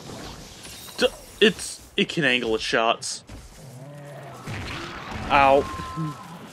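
A large sword swings through the air with a swoosh.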